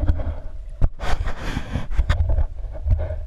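Water splashes and gurgles as a diver breaks the surface.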